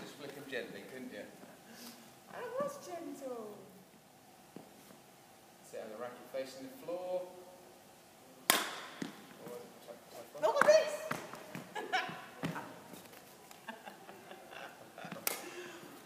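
A young woman talks and laughs in a large echoing hall.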